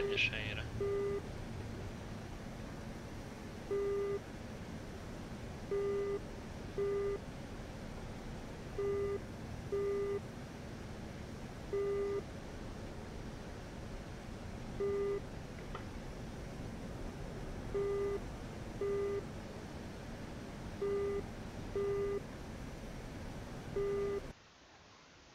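A cockpit warning tone beeps at uneven intervals.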